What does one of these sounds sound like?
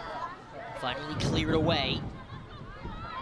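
A crowd of spectators cheers outdoors.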